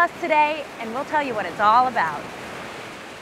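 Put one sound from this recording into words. A young woman speaks clearly and evenly into a microphone.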